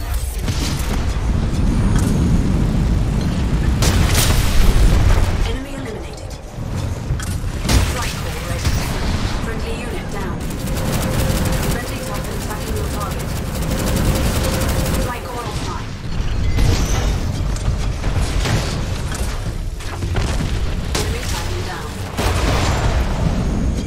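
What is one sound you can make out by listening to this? A heavy machine gun fires in rapid bursts.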